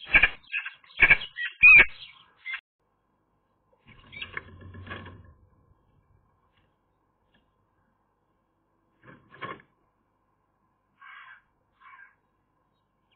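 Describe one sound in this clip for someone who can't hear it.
A magpie rustles and snaps twigs in a stick nest.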